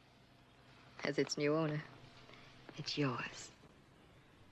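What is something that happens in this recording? A woman speaks in a sly, playful voice.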